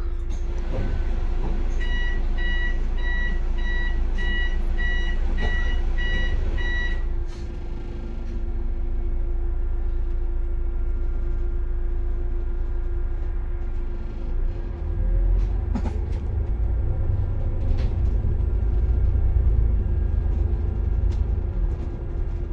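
Cars drive past on the road below.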